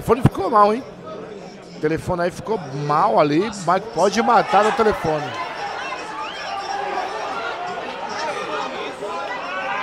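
A crowd of men murmurs and chatters in the background.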